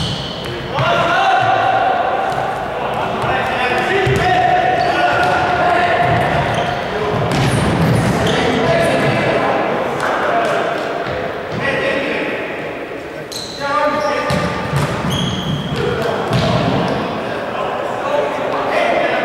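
Young men shout to each other in a large echoing hall.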